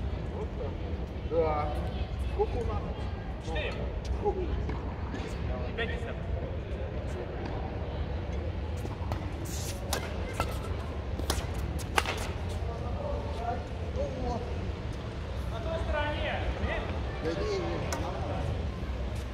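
Men talk to each other across the court.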